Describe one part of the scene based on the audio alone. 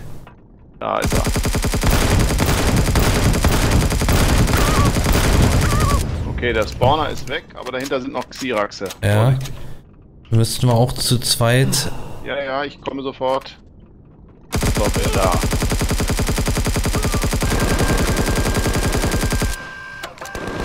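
Gunfire crackles loudly in rapid bursts.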